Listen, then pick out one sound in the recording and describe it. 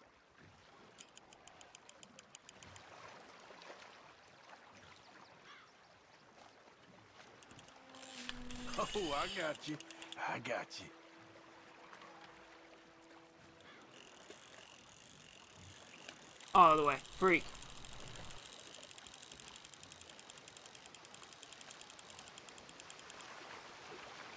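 A fishing reel clicks rapidly as line is wound in.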